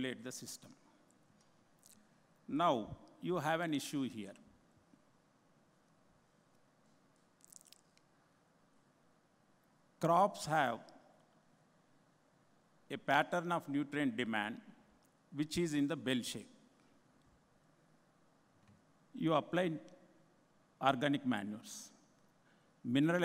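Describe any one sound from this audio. An elderly man speaks slowly into a microphone, with long pauses.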